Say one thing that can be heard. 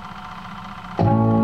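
Music starts playing loudly from the record.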